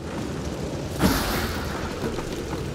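Wooden crates smash and splinter apart.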